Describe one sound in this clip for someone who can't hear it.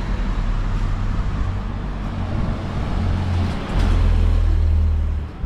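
A truck drives past close by.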